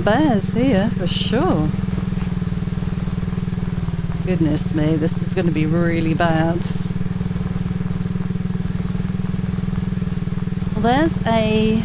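A motorbike engine drones steadily as it rides along.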